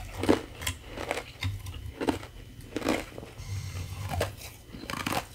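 Ice pieces clink and crackle as fingers handle them close to a microphone.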